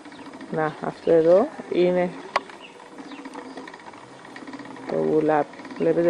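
A wooden spinning wheel creaks softly as it turns.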